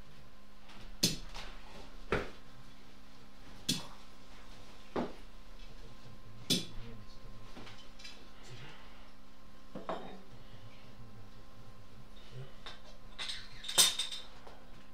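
A glass bottle knocks and clinks against hard surfaces now and then.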